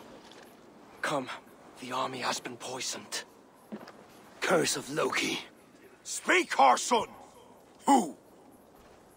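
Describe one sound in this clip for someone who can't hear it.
A man speaks with worry in a low voice.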